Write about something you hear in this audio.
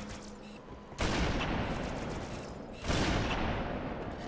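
A rifle fires with loud, echoing booms.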